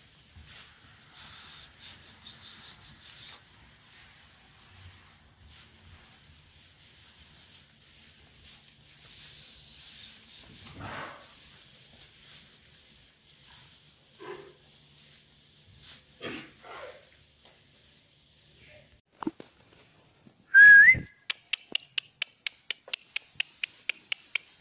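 Hooves shuffle and rustle through straw.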